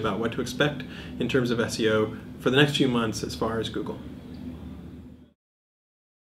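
A man speaks calmly and with animation close to a microphone.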